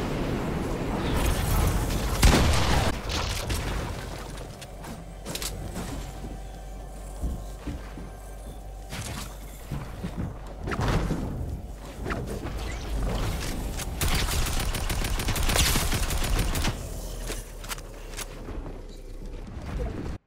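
Wooden walls and ramps are built with rapid knocking thuds.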